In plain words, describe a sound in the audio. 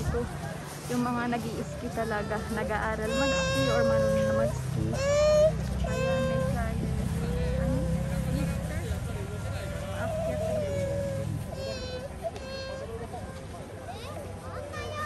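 Children shout and call out with high voices outdoors.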